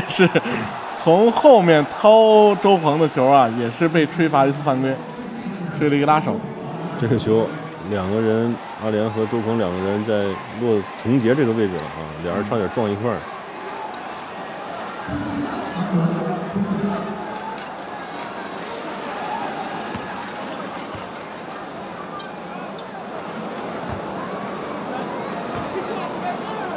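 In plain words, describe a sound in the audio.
A large indoor crowd murmurs and cheers in an echoing hall.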